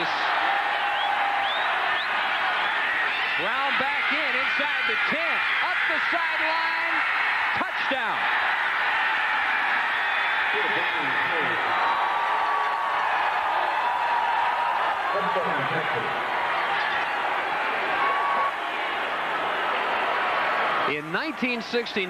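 A large stadium crowd cheers and roars loudly.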